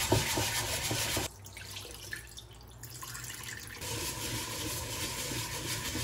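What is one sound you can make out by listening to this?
Hands swish and rub rice in water.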